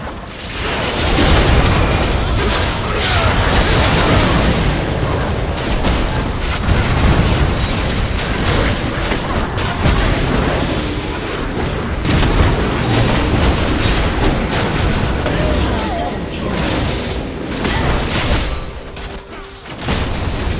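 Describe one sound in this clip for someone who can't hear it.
Game spells blast and crackle in a hectic battle.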